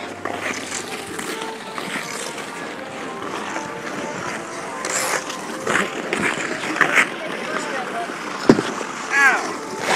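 Ice skates scrape across ice.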